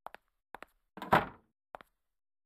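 A door swings shut with a thud.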